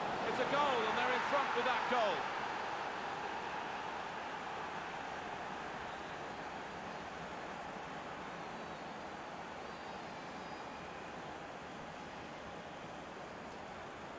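A large stadium crowd cheers and roars, slowly fading.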